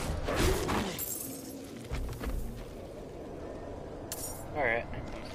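A character fights with weapon blows and impacts.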